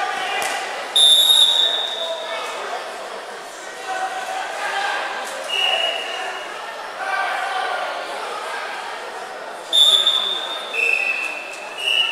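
A referee blows short, sharp whistle blasts.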